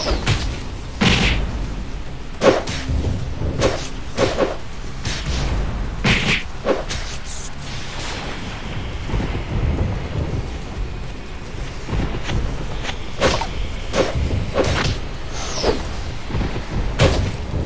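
Sword strikes and spell blasts hit with sharp whooshes and thuds.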